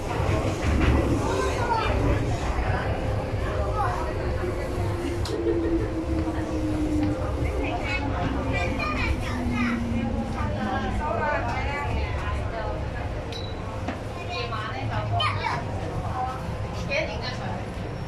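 A train rumbles along and slows to a stop.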